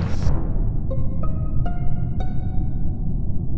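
A game alert blares, followed by a quick rising run of chimes.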